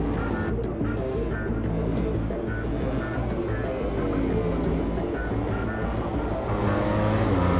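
Several motorcycle engines whine and roar as they race past.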